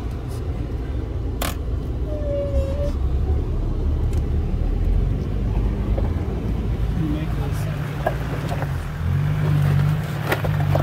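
A vehicle engine rumbles low as it crawls over rough ground.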